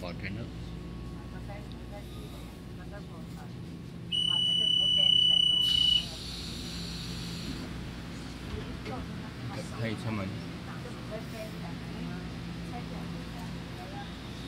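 A train hums and rumbles steadily.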